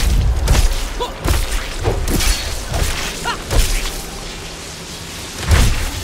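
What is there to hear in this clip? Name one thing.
Heavy magic blasts thud and whoosh again and again.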